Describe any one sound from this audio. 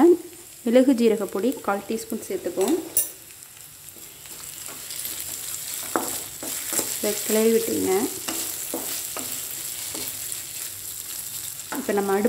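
A spatula scrapes and stirs vegetables in a metal pan.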